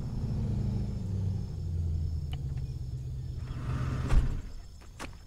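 A vehicle engine rumbles low and then cuts off.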